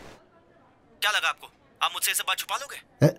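An older man talks on a phone.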